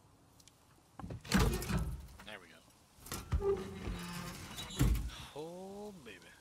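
A heavy metal safe door creaks and swings open with a thud.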